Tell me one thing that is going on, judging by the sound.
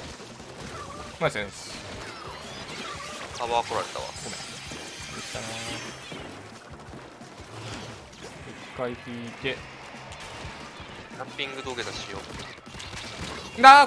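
Wet ink splatters with sharp shooting sounds.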